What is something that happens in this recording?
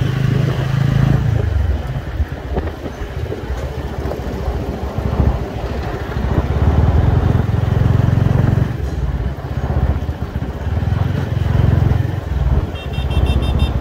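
City traffic drones nearby.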